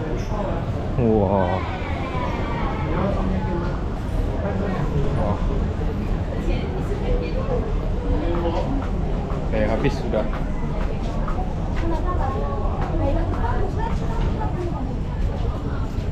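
People chatter in the background.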